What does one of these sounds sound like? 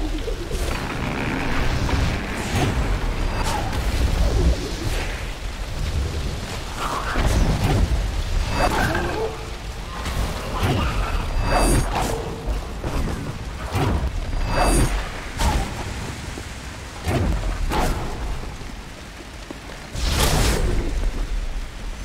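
Magical blasts whoosh and crackle in quick bursts.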